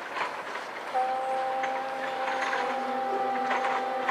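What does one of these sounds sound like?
A marching band starts playing brass and woodwind music outdoors.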